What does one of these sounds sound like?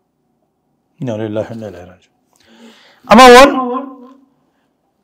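An elderly man speaks into a microphone after a long pause, his voice rising loudly.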